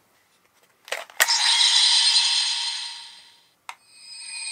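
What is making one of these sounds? A toy belt plays a loud rushing electronic sound effect that fades.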